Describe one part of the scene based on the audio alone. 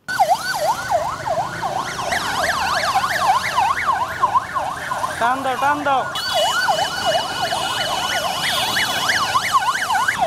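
Police sirens wail rapidly up and down close by.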